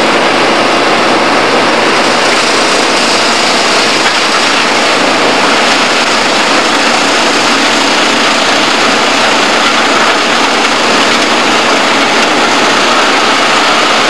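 A heavy diesel machine engine roars steadily close by.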